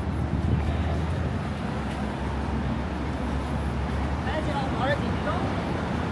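City traffic rumbles steadily in the distance outdoors.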